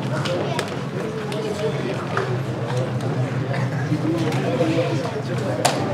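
A man laughs and talks warmly up close.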